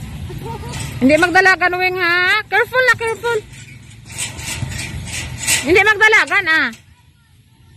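A young girl shouts and squeals playfully nearby.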